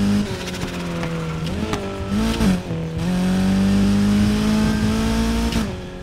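A sports car engine roars at high revs, dropping briefly as gears shift and climbing again.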